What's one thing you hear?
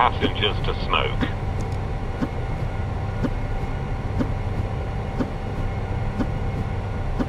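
A low engine drone hums steadily.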